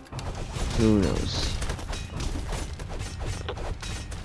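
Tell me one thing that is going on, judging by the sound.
A beam of magic blasts with a roaring whoosh.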